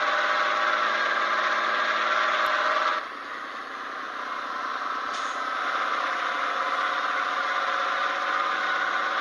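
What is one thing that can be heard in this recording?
A truck engine hums steadily, loud at first and then softer.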